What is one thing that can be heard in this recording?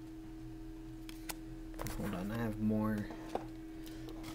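Playing cards slide and tap softly onto a table.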